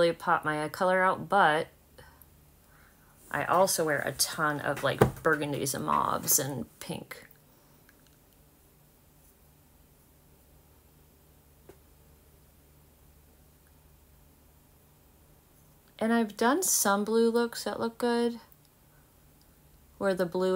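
A woman talks calmly and close to a microphone, in short bursts.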